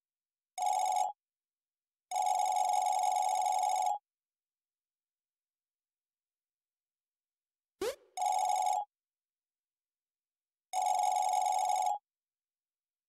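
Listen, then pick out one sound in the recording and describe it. A steady electronic beeping chatters in short bursts.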